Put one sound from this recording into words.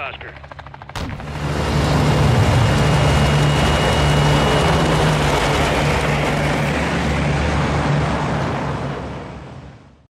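A large propeller plane's engines drone loudly and steadily.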